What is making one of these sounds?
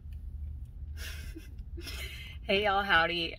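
A young woman laughs softly close by.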